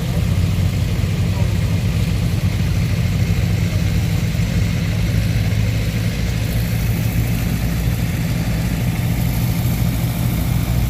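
Floodwater of a swollen river rushes and roars.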